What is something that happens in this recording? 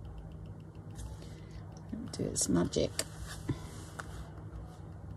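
A paper towel rustles as hands press it down.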